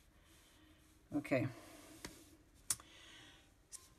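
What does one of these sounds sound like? A pencil scratches lightly across paper.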